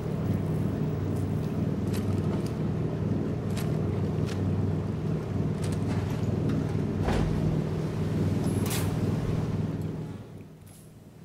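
A deep mechanical hum drones steadily.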